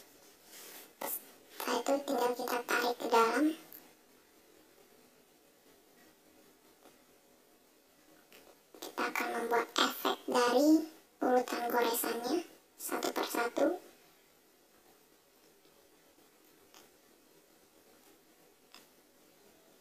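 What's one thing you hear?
A computer mouse clicks sharply a few times.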